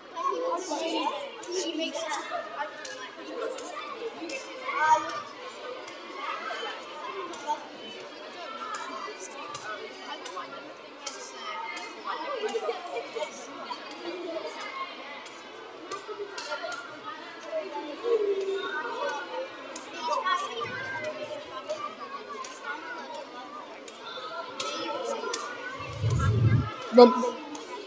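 A crowd of people chatter and murmur in a large echoing hall.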